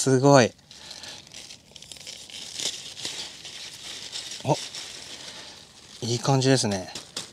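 A knife crunches through leafy stems near the ground.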